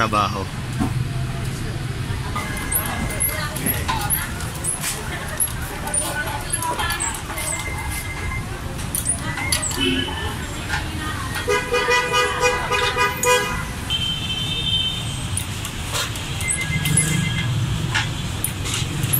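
Street traffic rumbles steadily outdoors nearby.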